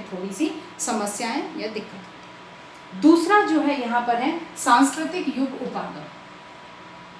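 A woman speaks clearly and steadily, close by.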